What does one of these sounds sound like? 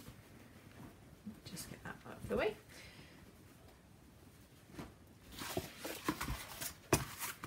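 Cardboard scrapes and slides across a hard tabletop.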